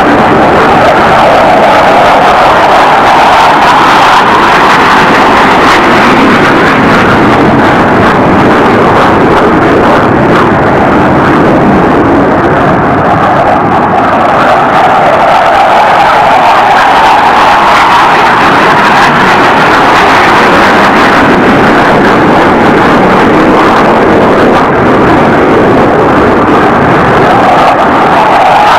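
A jet engine roars loudly as a fighter jet flies past.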